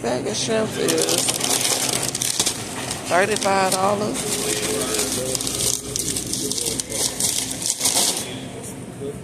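A plastic package crinkles as it is handled.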